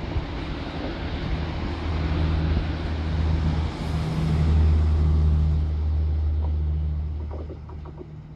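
A passenger train rushes past close by with a loud roar and rumble.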